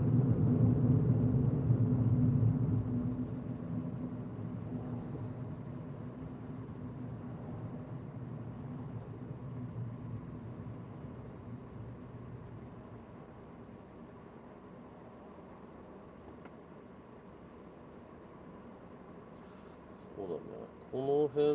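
A car engine hums and tyres roll on the road, growing quieter as the car slows.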